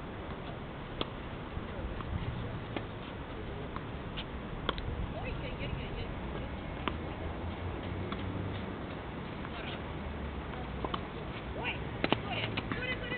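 Rackets hit a tennis ball in the distance.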